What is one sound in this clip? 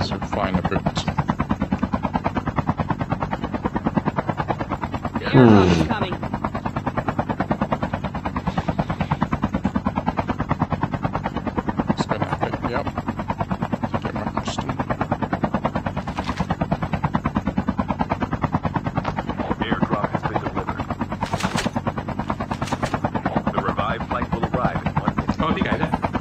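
A helicopter's rotor blades thump rapidly and steadily.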